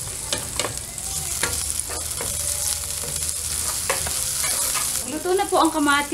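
Food sizzles in a hot frying pan.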